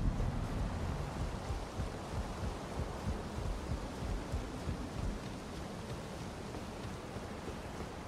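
Footsteps thud steadily on wooden planks and stone.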